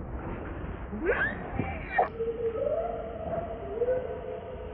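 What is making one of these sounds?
A baby monkey squeals and cries loudly close by.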